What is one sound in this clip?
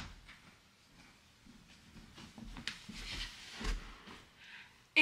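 Footsteps thud softly on the floor as a person walks closer.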